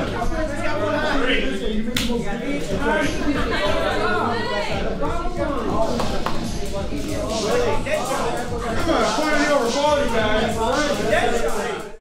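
A crowd of young men and women chatter and call out over one another in an echoing room.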